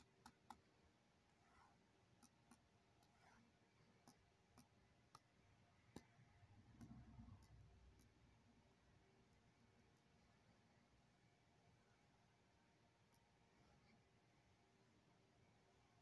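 A pen taps lightly on paper.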